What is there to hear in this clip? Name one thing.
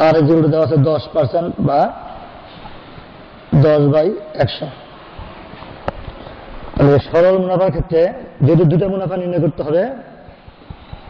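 A middle-aged man speaks calmly into a clip-on microphone.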